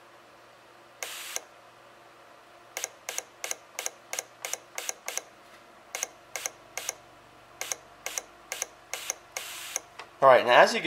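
A fuel injector clicks in quick, evenly spaced bursts.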